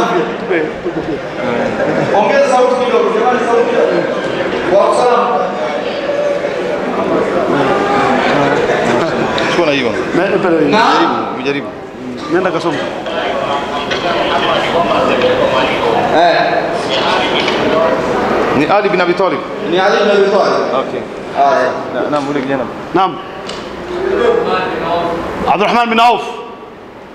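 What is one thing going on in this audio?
A man chants melodically into a microphone, heard through a loudspeaker in an echoing room.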